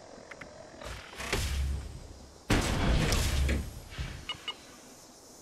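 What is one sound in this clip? Heavy metal armour clanks and hisses loudly as it opens.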